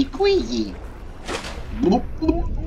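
Water splashes once as a swimmer dives under.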